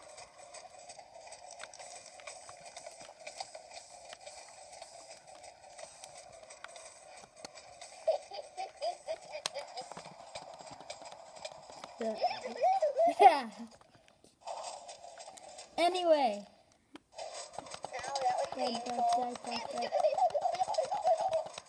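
Video game sound effects play from a small speaker.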